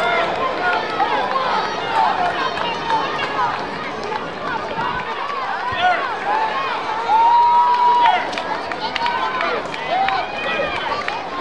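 A crowd of spectators cheers and shouts outdoors at a distance.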